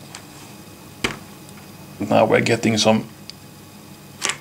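Small wooden blocks tap and click as they are set down on a board.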